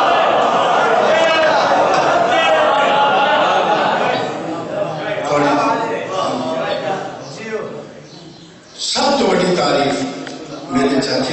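A man recites with feeling into a microphone, heard through loudspeakers.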